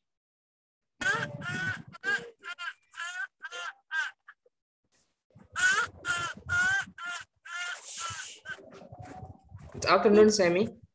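A young man talks calmly over an online call.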